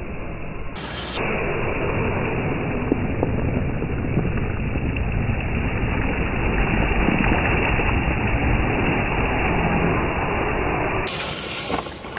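Water splashes loudly as a toy truck drives through a puddle.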